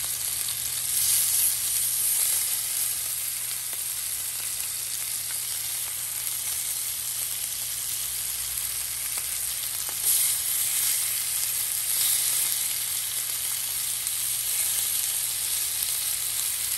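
Tongs scrape and tap against the pan.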